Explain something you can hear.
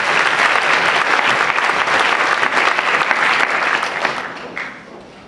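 A large audience applauds and cheers loudly in a big echoing hall.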